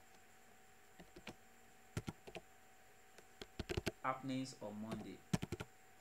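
Keyboard keys click as someone types.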